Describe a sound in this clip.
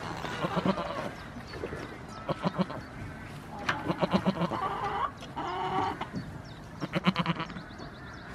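Hens cluck nearby.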